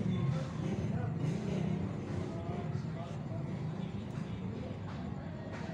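A sleeping puppy snores softly close by.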